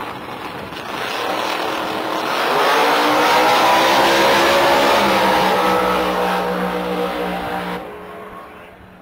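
A race car engine roars loudly as the car launches and speeds away, then fades into the distance.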